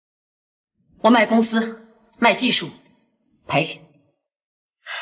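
A woman speaks calmly and firmly, close by.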